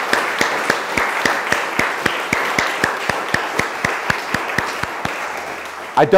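People clap their hands in a steady rhythm.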